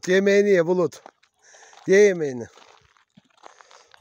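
A dog eats noisily from a plastic bowl.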